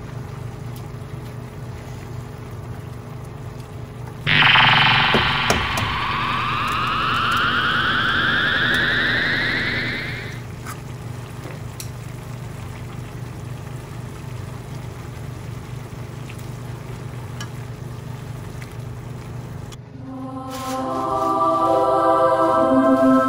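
Noodle soup simmers in a metal pan.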